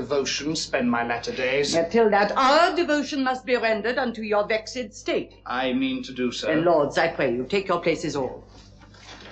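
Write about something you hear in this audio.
A woman speaks clearly and with feeling, in a room with some echo.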